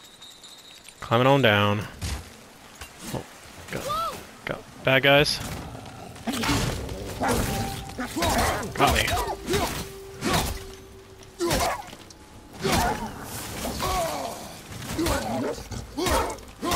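A man grunts with effort.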